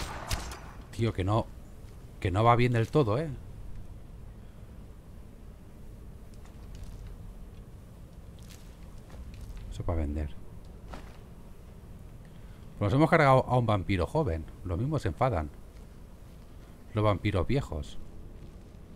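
A man talks calmly and close into a microphone, in short bursts.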